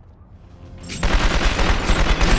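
A gun fires in a loud rapid burst.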